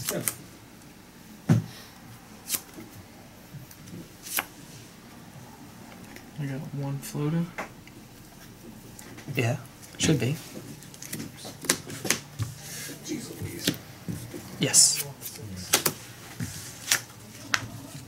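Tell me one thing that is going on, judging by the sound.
Playing cards tap and slide on a mat.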